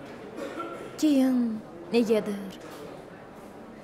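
A young woman speaks quietly and emotionally nearby.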